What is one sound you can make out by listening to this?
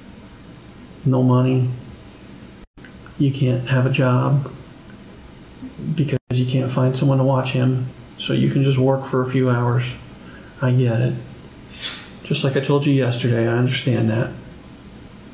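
A man speaks calmly in a small room, heard from a distance.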